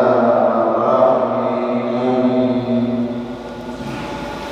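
A man chants a long drawn-out melodic recitation into a microphone in an echoing hall.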